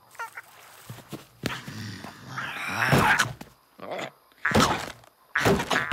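A large reptile growls and snarls.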